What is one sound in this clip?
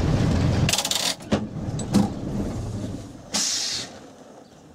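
A gear lever clunks as the driver shifts.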